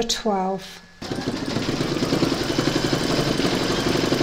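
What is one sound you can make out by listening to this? An embroidery machine stitches with a fast, steady rattling.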